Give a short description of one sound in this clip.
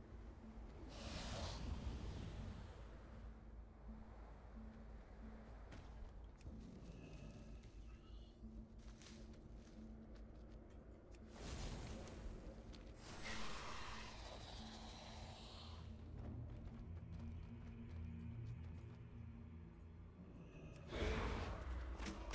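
Large wings beat with a rushing whoosh.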